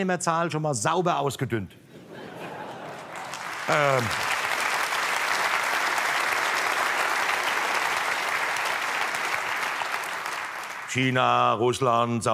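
A middle-aged man speaks with animation into a microphone on a stage.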